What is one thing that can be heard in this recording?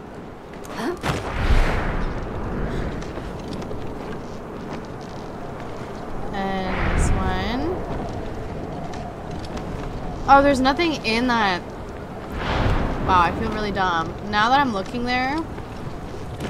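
Wind rushes past a glider in soft whooshes.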